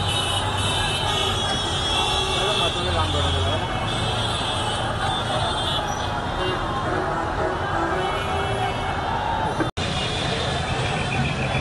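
Traffic rumbles along the street.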